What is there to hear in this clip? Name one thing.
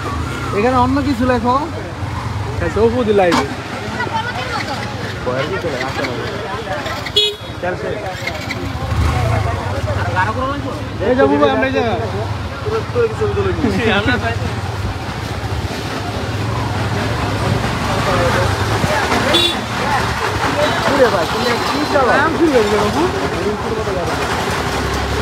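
A motorbike engine idles and putters steadily close by.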